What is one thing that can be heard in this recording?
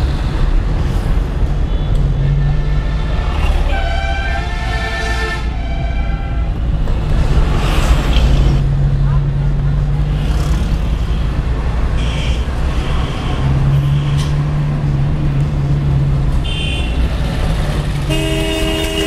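Traffic moves along a busy street.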